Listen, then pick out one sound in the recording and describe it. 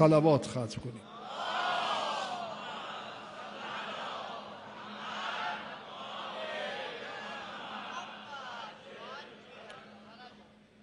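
A large crowd of men chants together in a low murmur.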